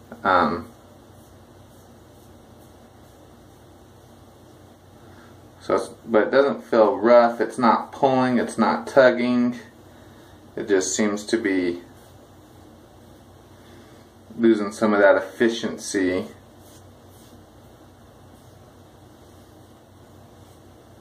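A razor scrapes softly across a scalp.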